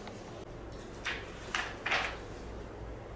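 Paper rustles as sheets are turned over.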